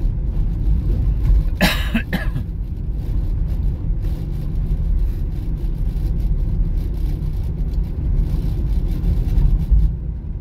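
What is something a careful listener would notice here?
Tyres roll steadily over the road surface.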